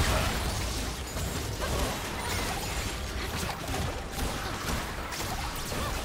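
Weapons clash and strike repeatedly.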